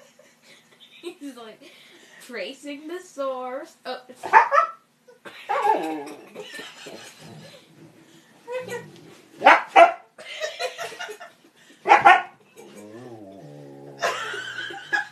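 A husky howls and whines in long, wavering tones close by.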